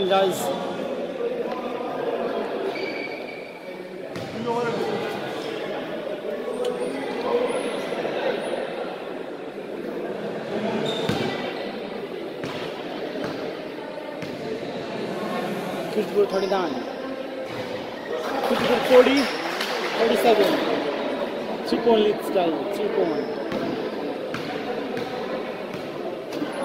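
A crowd of young men chatters and calls out across a large echoing hall.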